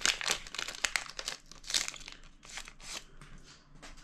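Foil wrapping crinkles and tears as it is pulled open.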